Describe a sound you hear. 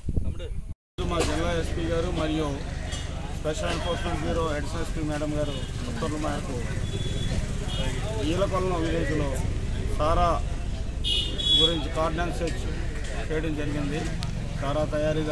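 A middle-aged man speaks steadily into several microphones outdoors.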